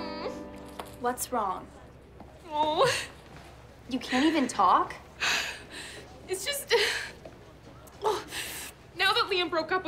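A young woman speaks with exasperation, close by.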